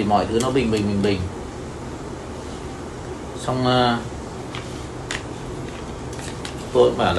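A middle-aged man speaks calmly and close to a microphone, in short bursts.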